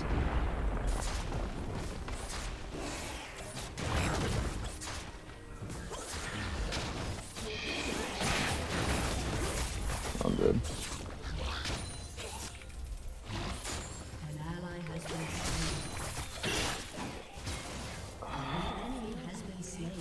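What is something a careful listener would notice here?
Magic blasts and sword hits crackle and thud in a fast game battle.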